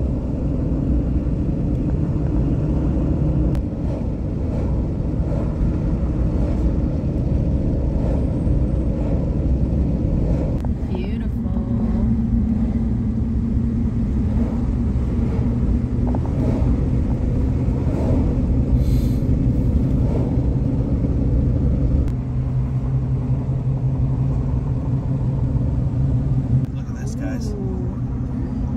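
A car engine hums steadily with tyres rumbling on the road, heard from inside the car.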